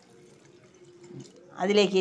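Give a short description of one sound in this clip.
Water pours into a pot of liquid.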